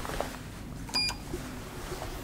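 A lift call button beeps once when pressed.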